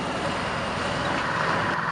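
A second truck's engine rumbles as it approaches.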